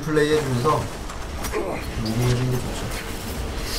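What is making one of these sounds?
Two young men talk with animation into a microphone.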